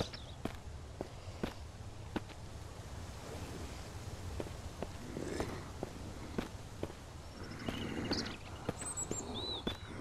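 Footsteps tap on a hard rooftop.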